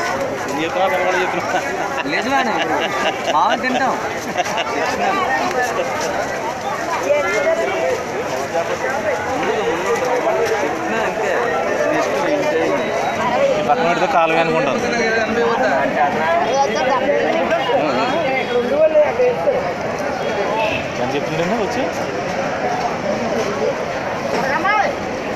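Many men and women chatter and call out all around, close by.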